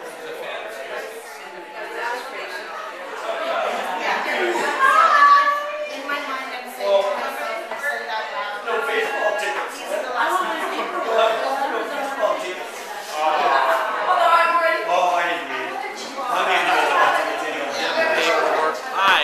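Several men and women chat nearby.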